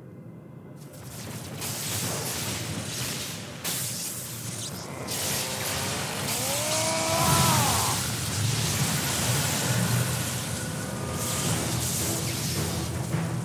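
Electricity crackles and roars loudly.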